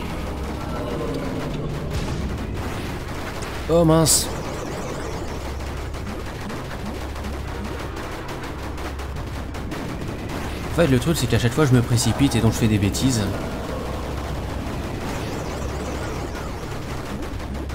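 Rapid electronic blasts fire again and again.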